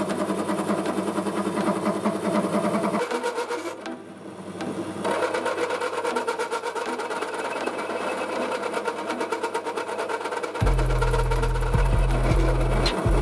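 A metal lathe whirs steadily as it spins.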